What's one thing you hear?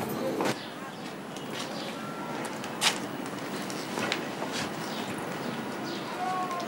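A woman's footsteps tap on a hard floor.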